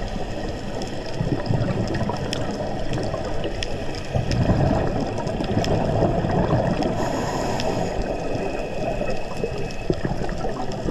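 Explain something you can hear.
Scuba breathing bubbles rumble and gurgle close by underwater.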